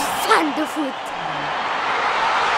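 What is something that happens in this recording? A young girl speaks briefly and cheerfully close by.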